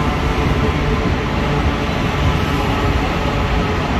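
A train rolls away along the platform.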